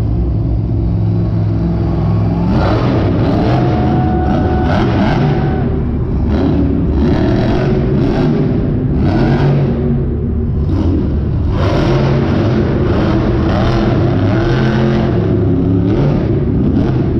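A monster truck engine roars loudly and revs up and down.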